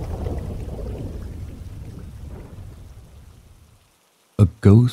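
A small campfire crackles softly.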